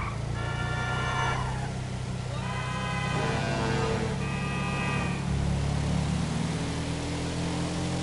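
A buggy engine hums steadily as the vehicle drives along.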